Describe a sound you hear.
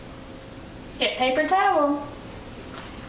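A woman speaks briefly and calmly nearby.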